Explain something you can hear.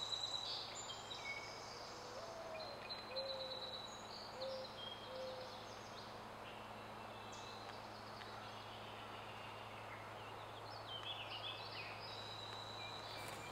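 A woodpecker calls in short high notes.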